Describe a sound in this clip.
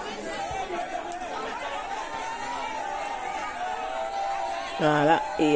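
A crowd of women sing together loudly nearby.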